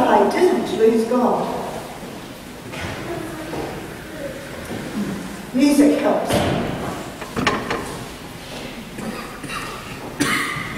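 A woman speaks with expression, heard from a distance in a large echoing hall.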